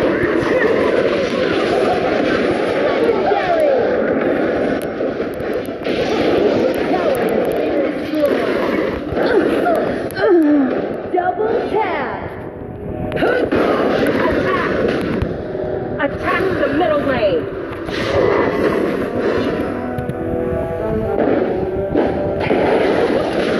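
Fantasy battle sound effects of spells and weapon strikes clash.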